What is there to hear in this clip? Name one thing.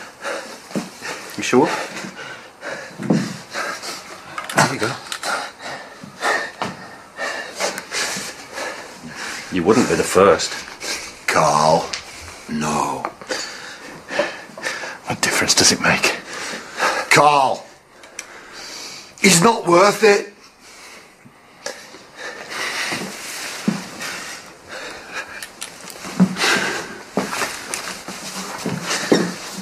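Several men talk tensely, close by.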